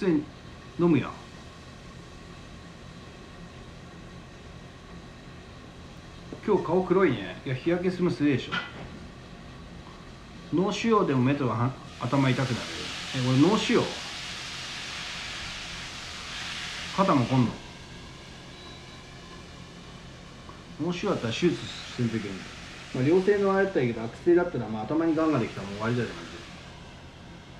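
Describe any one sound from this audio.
A young man speaks close to the microphone in short bursts, with animation.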